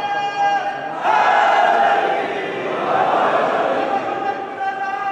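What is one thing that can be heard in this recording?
A crowd of men chants together in response.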